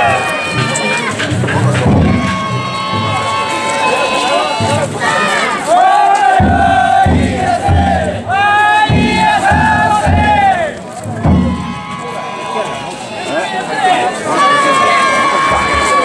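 A group of men chant loudly in unison outdoors.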